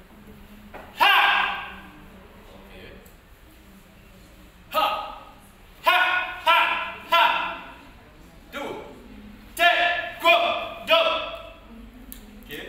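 A young man shouts sharp martial arts cries in an echoing hall.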